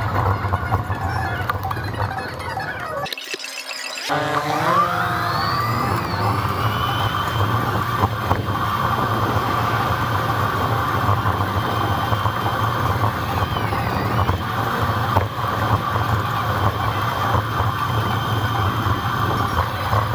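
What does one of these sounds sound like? Wind rushes steadily past outdoors.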